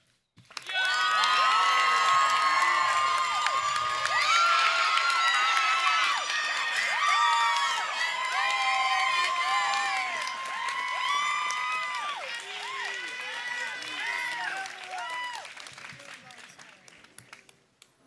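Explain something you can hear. A crowd cheers, whoops and applauds loudly outdoors.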